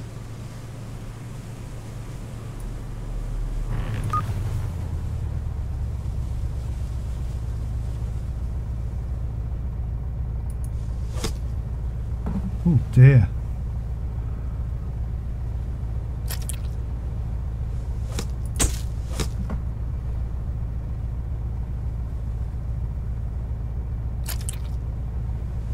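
A fishing reel clicks as line is wound in.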